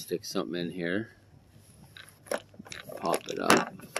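A screwdriver scrapes and clicks against a metal screw.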